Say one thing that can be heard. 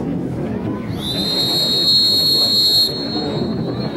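A referee blows a long whistle blast.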